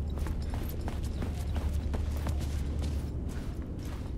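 Footsteps creak up wooden stairs.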